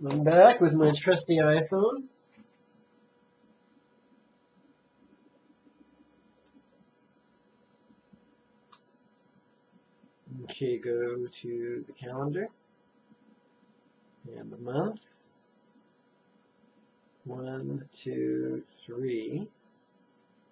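A man speaks calmly and close to the microphone, in short bursts with pauses.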